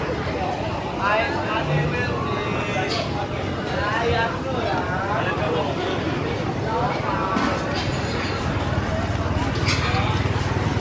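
A crowd of people chatters nearby, outdoors.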